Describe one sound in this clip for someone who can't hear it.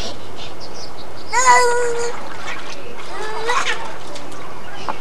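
Water splashes gently in a shallow pool.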